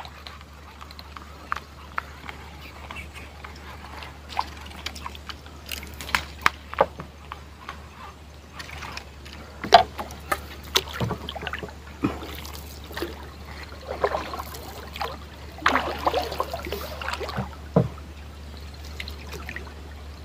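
A small boat motor hums low and steadily.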